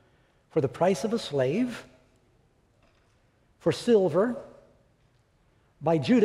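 An elderly man speaks calmly and clearly into a microphone, with pauses between phrases.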